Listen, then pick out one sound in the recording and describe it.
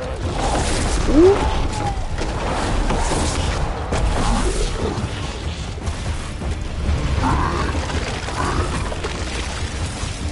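Fiery spell blasts crackle and boom repeatedly.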